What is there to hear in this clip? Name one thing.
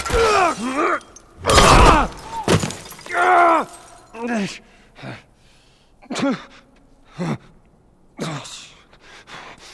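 A man groans and gasps in pain close by.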